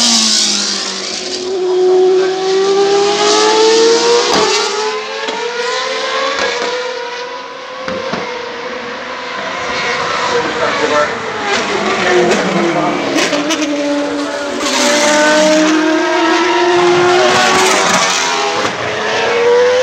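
Racing car engines roar and whine past, rising and falling in pitch.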